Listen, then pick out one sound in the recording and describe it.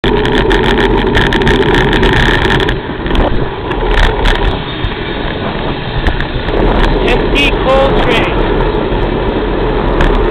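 Wind buffets loudly against a microphone from a moving vehicle.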